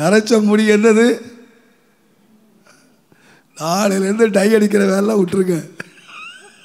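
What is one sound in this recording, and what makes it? An elderly man sings into a microphone in long held notes.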